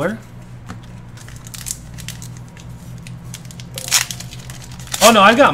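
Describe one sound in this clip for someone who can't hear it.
Foil wrapping crinkles and tears as a card pack is opened.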